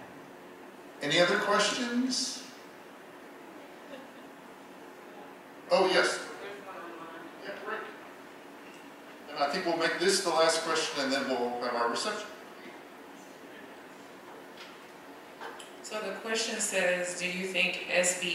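A man speaks into a microphone in a large room, pausing between phrases.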